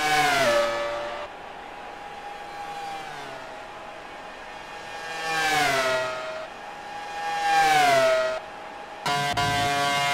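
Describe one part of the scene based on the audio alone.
A racing car engine roars past, its pitch dropping as it goes by.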